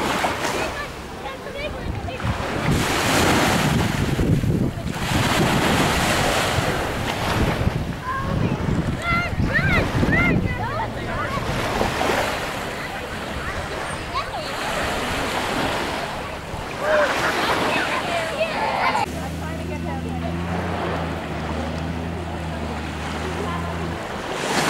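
Small waves lap gently on a sandy shore.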